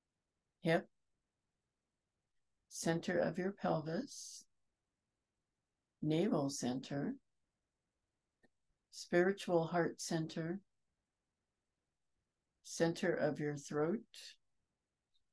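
A middle-aged woman speaks calmly in short phrases through an online call.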